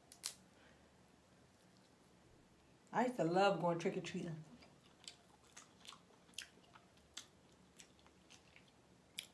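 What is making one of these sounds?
Crab and crawfish shells crack and snap in hands close by.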